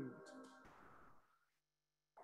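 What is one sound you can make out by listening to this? A piano plays.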